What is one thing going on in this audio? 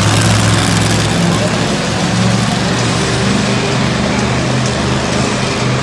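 A monster truck engine roars loudly in a large echoing arena.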